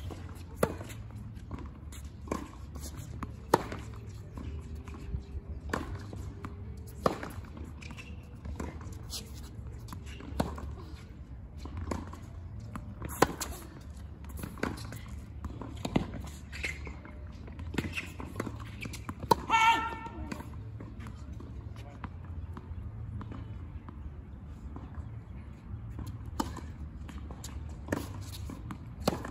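Tennis balls are struck with rackets in a steady rally, each hit a sharp pop.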